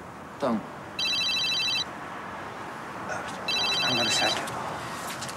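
A mobile phone beeps with short tones.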